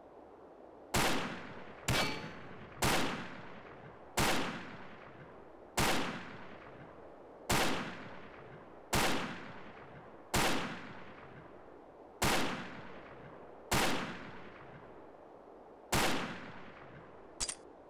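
A rifle fires single loud shots, each echoing away.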